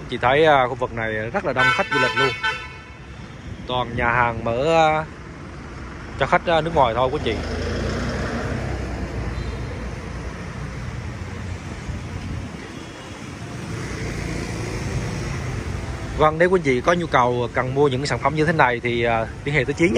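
Motorbikes and cars pass along a busy street.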